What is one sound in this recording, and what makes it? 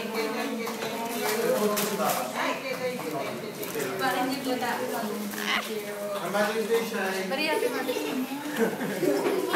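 A crowd of men and women chatter and laugh close by.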